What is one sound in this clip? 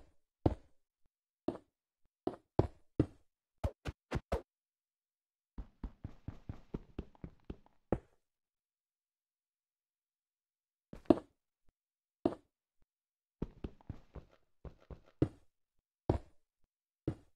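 Blocks are placed with short dull thuds.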